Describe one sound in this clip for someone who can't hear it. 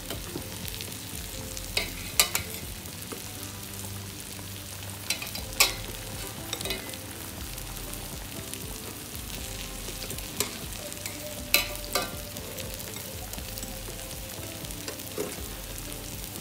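A metal ladle clinks against the side of a pot.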